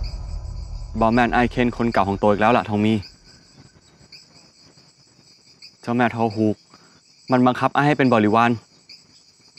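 A young man speaks firmly and with emotion close by.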